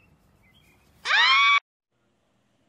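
A goose honks loudly.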